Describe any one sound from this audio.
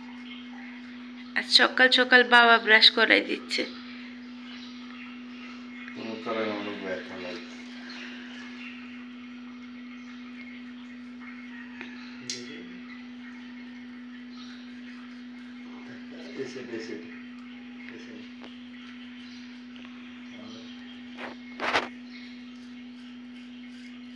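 A toothbrush scrubs against teeth.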